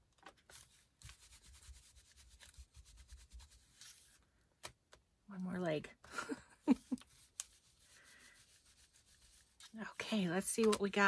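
A foam tool rubs and dabs softly on paper.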